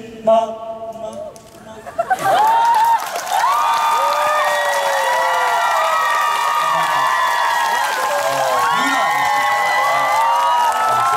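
Several young men sing together through microphones.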